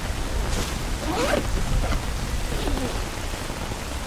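A backpack rustles as it is opened.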